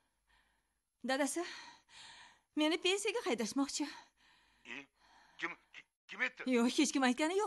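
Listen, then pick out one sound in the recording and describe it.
A middle-aged woman talks with animation on a phone, close by.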